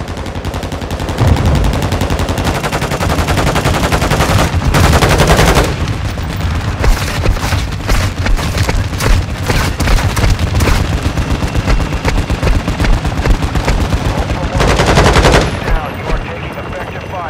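Quick footsteps run on a paved road.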